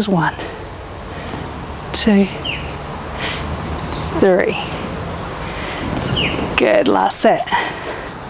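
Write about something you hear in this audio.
A woman speaks calmly and clearly, close by, outdoors.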